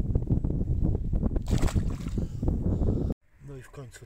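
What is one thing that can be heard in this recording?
A fish splashes into water.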